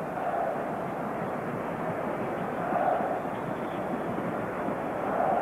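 A large stadium crowd roars and chants steadily, heard through a muffled old recording.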